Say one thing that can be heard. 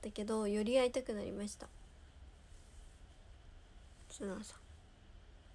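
A young woman speaks close to the microphone in a soft, high voice.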